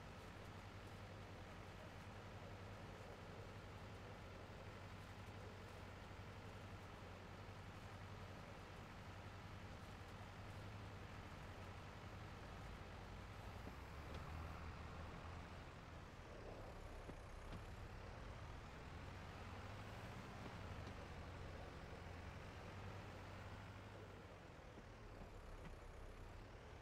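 A tractor engine rumbles steadily as it drives.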